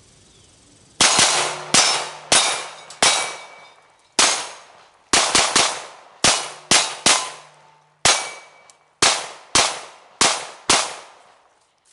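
Pistol shots crack in quick succession outdoors, each echoing briefly.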